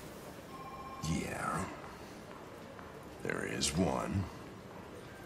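An older man answers in a low, gravelly voice.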